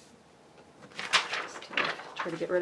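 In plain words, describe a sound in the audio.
A sheet of paper rustles and crinkles as it is lifted.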